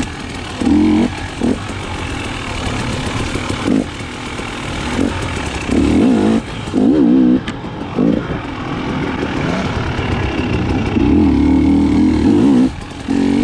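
Tyres crunch over dirt and leaves.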